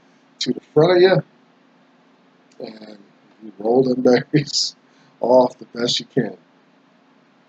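A man speaks with animation close to a microphone, in short bursts.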